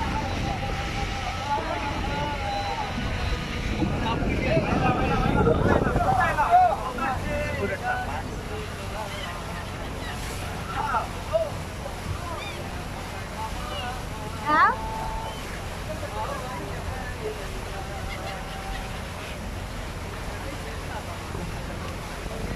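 Gulls cry and squawk overhead.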